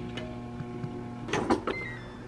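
A microwave oven hums steadily.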